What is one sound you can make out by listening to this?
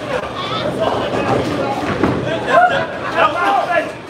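A bowling ball rumbles down a wooden lane.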